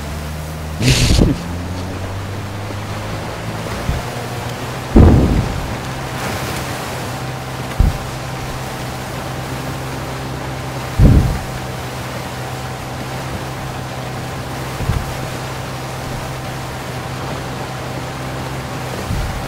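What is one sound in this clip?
A boat motor hums steadily.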